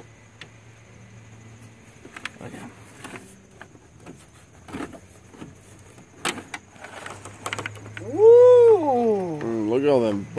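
Plastic parts knock and rattle as hands lift them out.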